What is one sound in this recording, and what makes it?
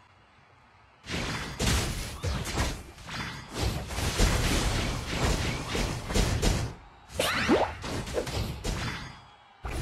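Game sound effects of blasts and hits play.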